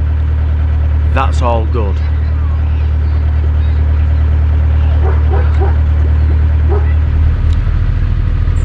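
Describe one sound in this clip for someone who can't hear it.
A boat engine hums low and steadily.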